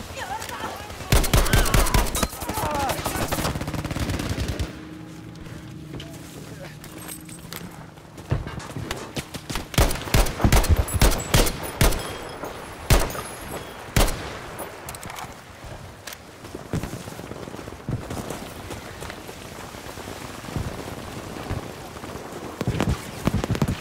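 Gunshots crack and boom nearby and far off.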